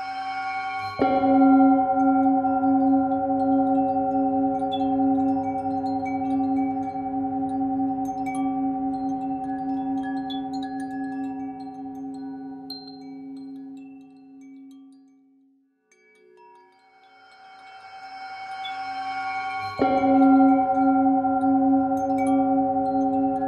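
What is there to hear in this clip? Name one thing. A metal singing bowl is struck and rings out, slowly fading.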